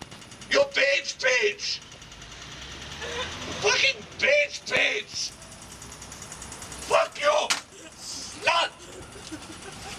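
A young man talks with animation into a phone.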